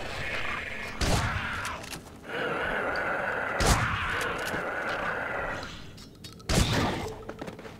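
Gunshots ring out loudly, echoing in a cave.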